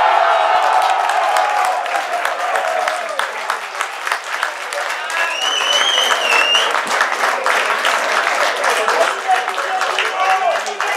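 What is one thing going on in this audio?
Spectators nearby clap their hands.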